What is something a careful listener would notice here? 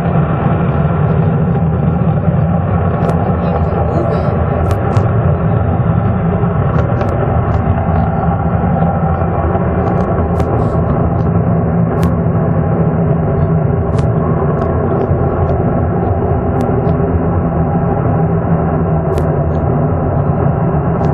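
Jet engines roar loudly and steadily on afterburner.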